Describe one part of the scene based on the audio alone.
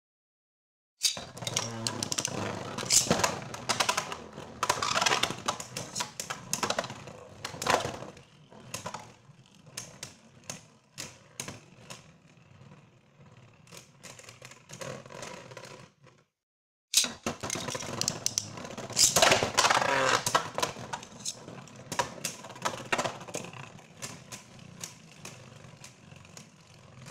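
Spinning tops knock sharply against a plastic arena wall.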